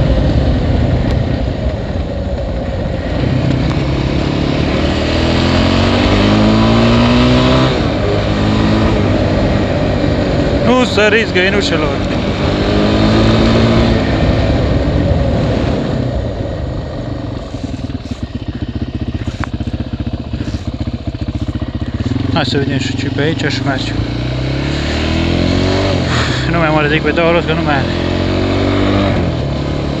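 A quad bike engine revs up and down up close.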